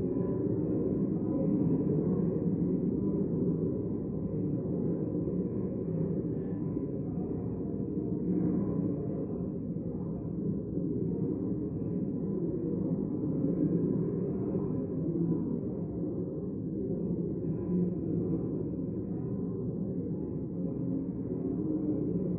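A crowd of men and women murmur and chat in a large room.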